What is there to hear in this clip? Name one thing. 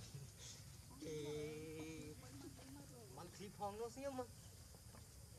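Young monkeys squeal and chatter.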